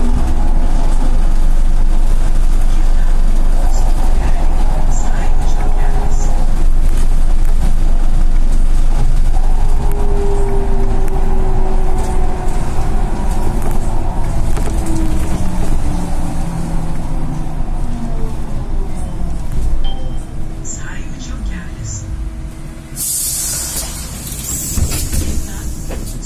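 The bus rattles and rumbles over the road.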